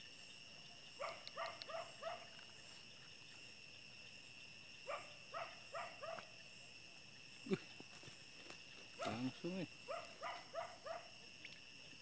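A small frog croaks in short rapid bursts.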